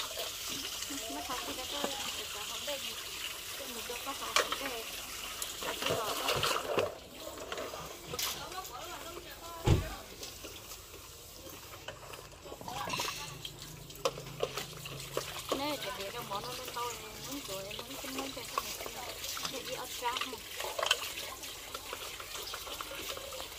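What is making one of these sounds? Water splashes as dishes are washed in a basin.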